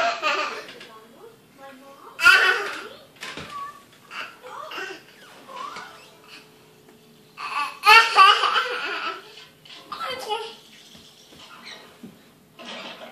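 A toddler squeals and babbles excitedly nearby.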